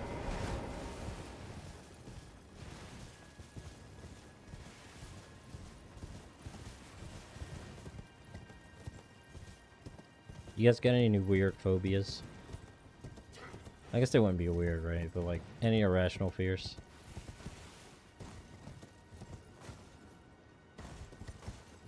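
Footsteps run through grass and over stone.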